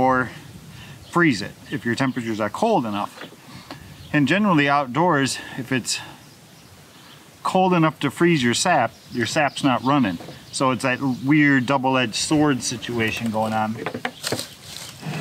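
A man speaks calmly and close to the microphone.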